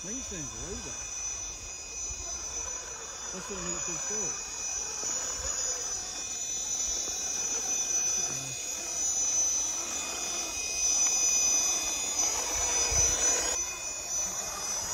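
Plastic tyres scrape and crunch on rock.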